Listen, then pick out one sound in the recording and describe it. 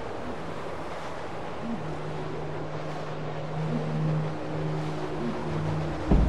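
Wind howls steadily through snow.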